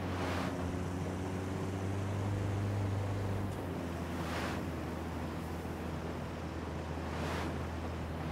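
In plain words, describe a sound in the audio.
A van's engine hums steadily as it drives along.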